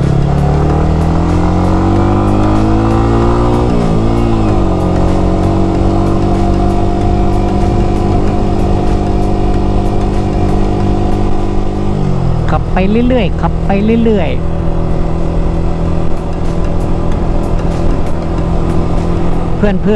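A motorcycle engine hums steadily, its pitch rising and dropping with shifts in speed.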